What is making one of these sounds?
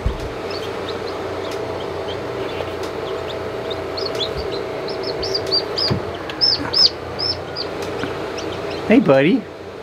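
A small chick peeps in high, shrill chirps.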